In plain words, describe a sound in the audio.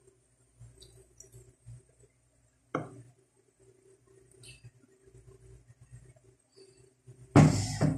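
Thick liquid pours into a glass jar.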